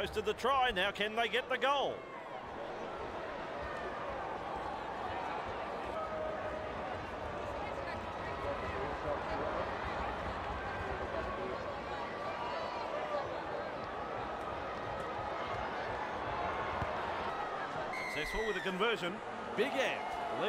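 A large stadium crowd murmurs and chatters steadily.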